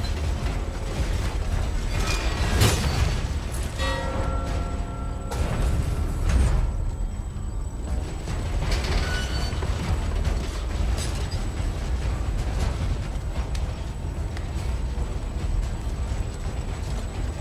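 Quick footsteps tap across a hard tiled floor.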